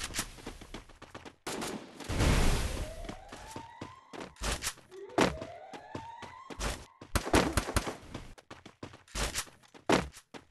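Pistol shots crack in a video game.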